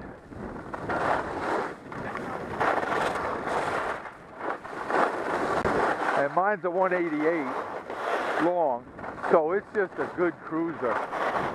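Skis scrape and hiss over packed snow at speed.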